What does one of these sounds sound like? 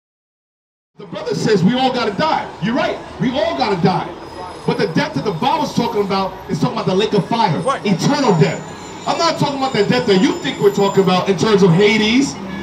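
A man preaches loudly and with animation into a microphone outdoors.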